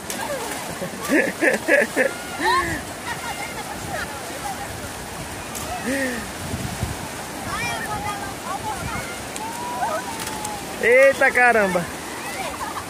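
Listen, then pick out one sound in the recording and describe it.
Young boys shout and laugh with excitement nearby.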